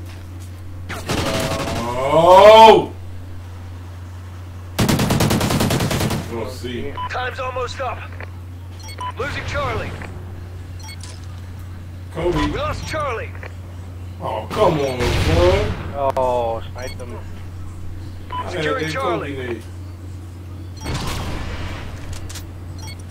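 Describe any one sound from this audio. A man talks with animation into a close microphone, in bursts.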